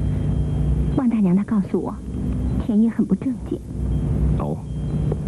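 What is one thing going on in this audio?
A woman speaks calmly and quietly.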